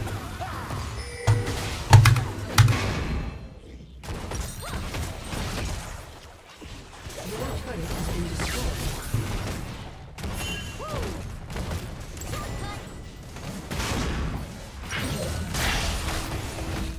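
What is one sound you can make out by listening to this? Game sound effects clash and chime.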